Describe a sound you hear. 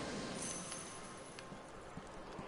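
Sparks crackle and fizz close by.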